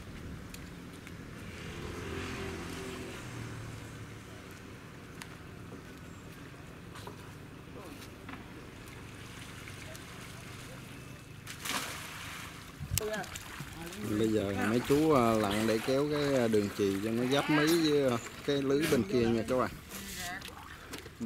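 Water splashes as men wade in a pond.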